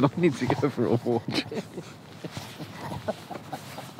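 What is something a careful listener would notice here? A young man laughs and talks close by.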